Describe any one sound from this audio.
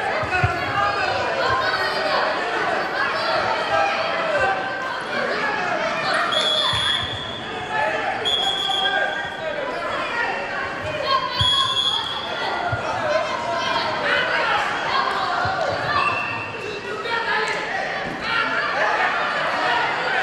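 A crowd of children and adults shout and cheer throughout in an echoing hall.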